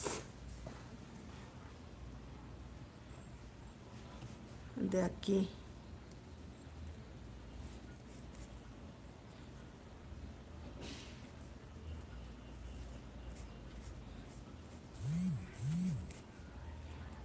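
A paintbrush dabs and scrapes softly on cloth.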